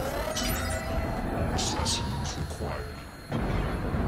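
Puffs of smoke burst with soft whooshes.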